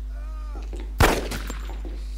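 A pistol fires a single shot.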